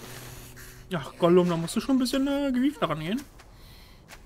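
A man snarls and gurgles in a raspy, strained voice close by.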